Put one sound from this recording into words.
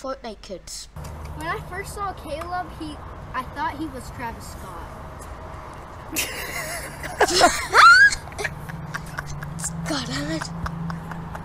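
A young boy talks with excitement close by.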